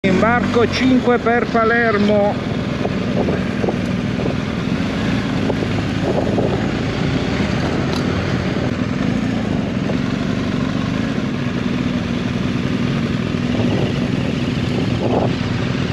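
Wind rushes past a helmet microphone.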